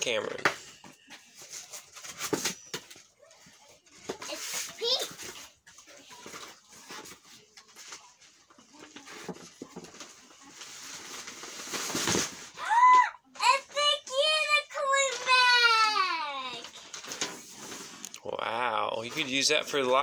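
Items rustle and bump inside a cardboard box.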